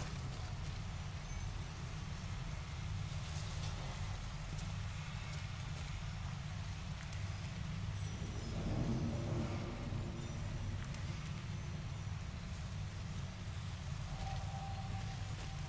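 Water sloshes softly around legs wading through a pond.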